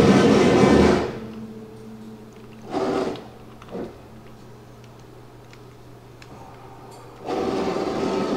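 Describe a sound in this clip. A cutting machine hums steadily as it moves.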